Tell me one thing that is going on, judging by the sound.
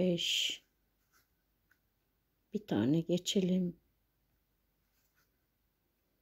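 A crochet hook softly pulls yarn through stitches.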